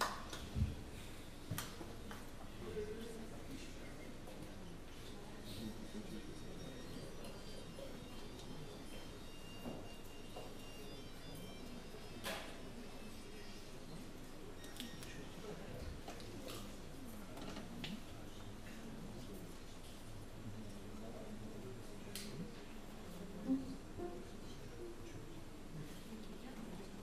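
A piano plays softly.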